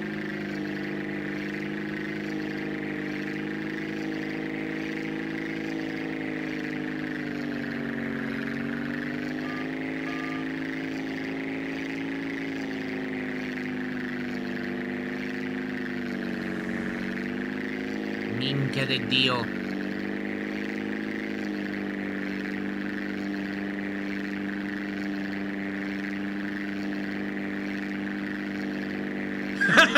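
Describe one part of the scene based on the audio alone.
A propeller plane's engine drones steadily, its pitch dipping and rising now and then.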